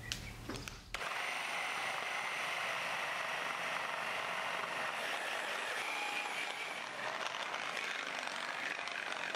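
A small electric food chopper whirs steadily.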